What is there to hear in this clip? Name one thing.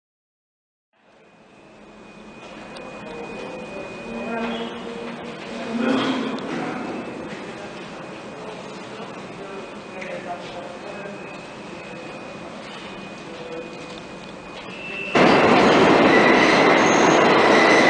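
A subway train rumbles along the tracks, echoing in a tunnel.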